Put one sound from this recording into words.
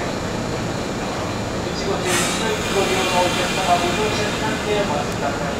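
A train rolls slowly into a station with a low rumble.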